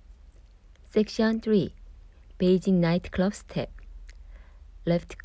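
A young woman counts out the beats with animation.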